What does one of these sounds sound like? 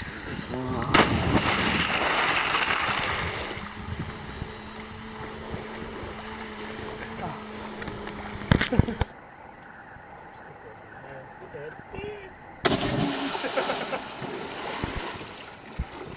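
A body hits the water with a loud splash.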